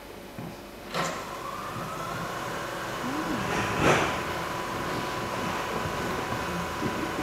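A steady high electronic tone sounds through loudspeakers.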